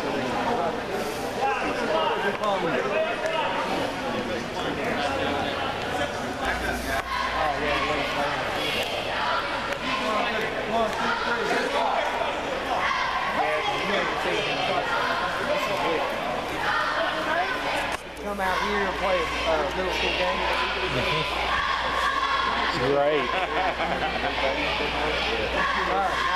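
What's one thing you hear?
Young men and boys talk and call out in a large crowd outdoors.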